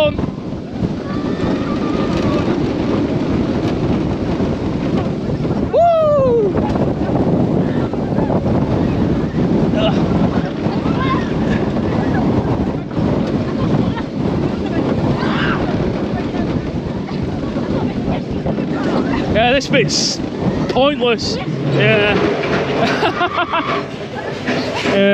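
A roller coaster rumbles and clatters along its track.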